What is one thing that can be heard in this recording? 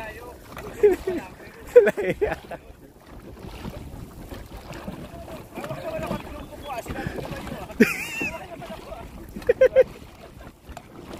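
Dragon boat paddles dip and splash into open water.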